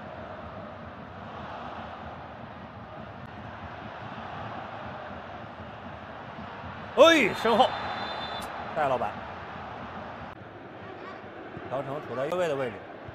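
A large stadium crowd murmurs and chants steadily outdoors.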